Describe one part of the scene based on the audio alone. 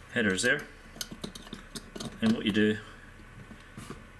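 A plastic board clicks as parts are pressed into it.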